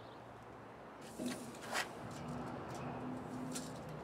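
A metal tape measure rattles and snaps shut.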